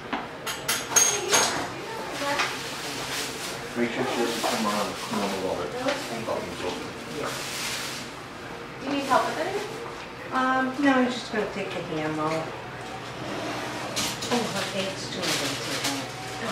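Several adults talk and chat casually nearby.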